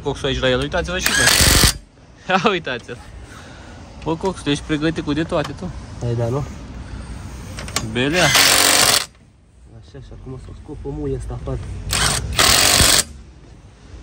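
An impact wrench rattles loudly in short bursts.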